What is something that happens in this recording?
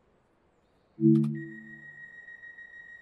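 Train doors close with a thud.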